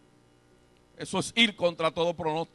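A man speaks forcefully into a microphone through loudspeakers.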